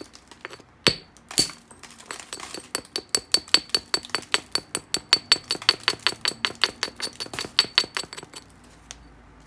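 A stone taps rapidly against a hard glassy rock with sharp clicking knocks.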